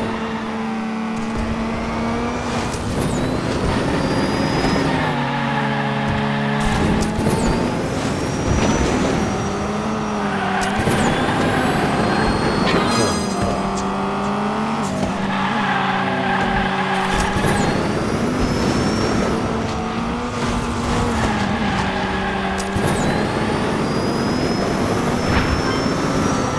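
A small racing car's engine whines, rising and falling in pitch.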